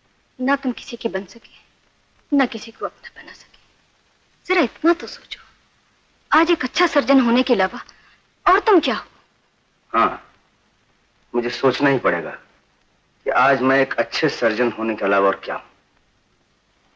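A man speaks tensely and closely.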